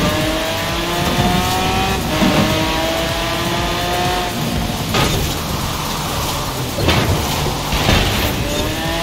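A sports car engine roars at high revs, shifting gears.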